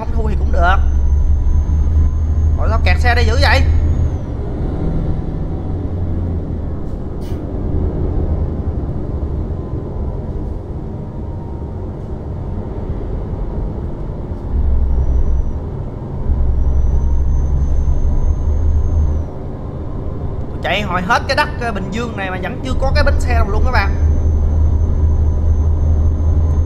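A bus engine hums low and steadily as it drives.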